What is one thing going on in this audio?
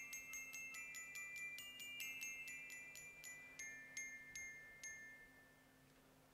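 A keyboard plays short bright chiming notes.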